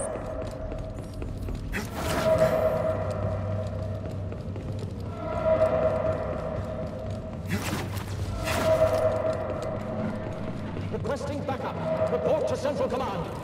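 Footsteps run quickly across a hard metal floor.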